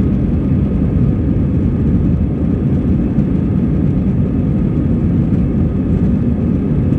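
The cabin rattles and thuds as the plane rolls over the ground.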